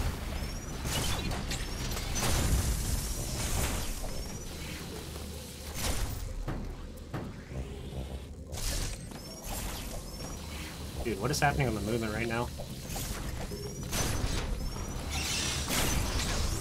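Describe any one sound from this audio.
Shots blast in a video game.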